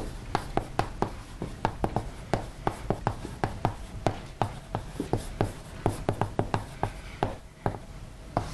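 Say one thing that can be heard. Chalk taps and clicks rapidly on a blackboard.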